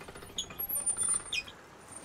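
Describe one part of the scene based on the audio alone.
Water drips and trickles from wet cloth.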